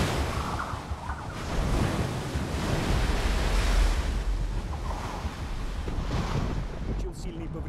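A strong wind howls.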